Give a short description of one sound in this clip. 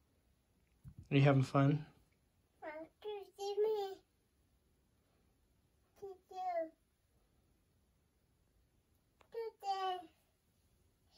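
A toddler babbles and talks in a high voice close by.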